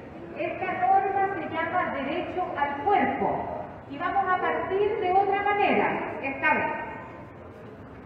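A woman speaks clearly into a microphone outdoors.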